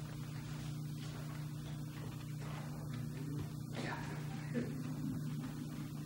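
Paper rustles as sheets are shuffled and turned.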